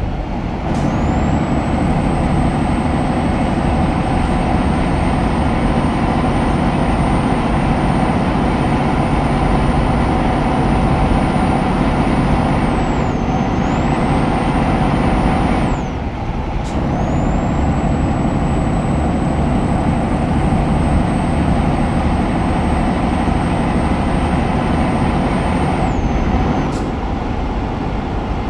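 Tyres roll on the road surface.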